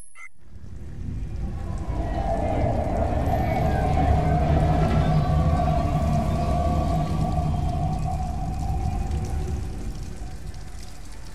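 A train rumbles past overhead, loud and heavy, then fades.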